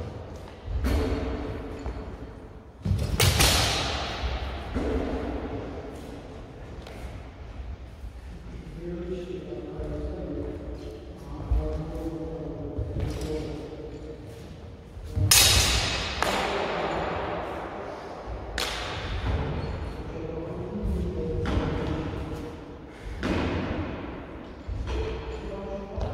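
Feet stamp and shuffle on a wooden floor.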